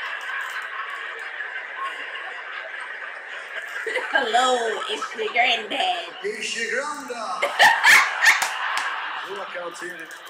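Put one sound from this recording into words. A young woman laughs heartily close by.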